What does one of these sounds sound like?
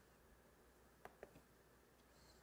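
A man taps keys on a laptop keyboard.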